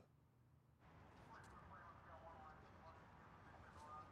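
A man talks on a phone outdoors.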